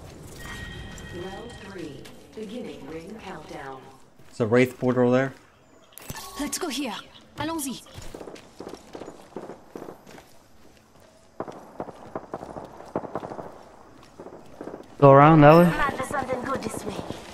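Footsteps run quickly over dirt and wooden planks.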